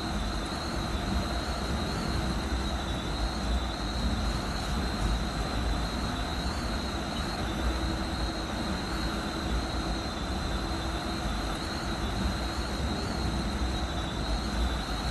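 A high electric motor whine hums steadily.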